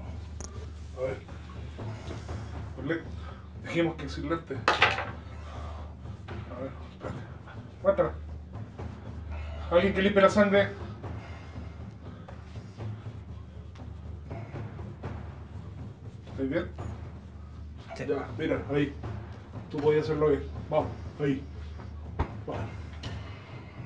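A man speaks in short bursts, close by.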